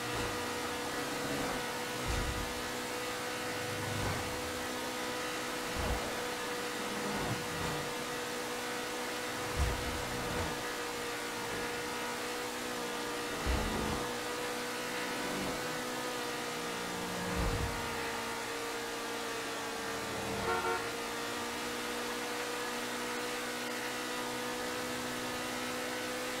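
A car engine drones steadily at speed.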